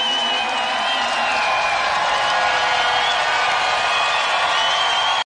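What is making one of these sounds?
A band plays music loudly in a large echoing hall.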